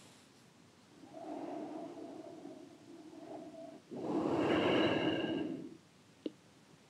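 An elderly man chants long, steady tones in an echoing hall.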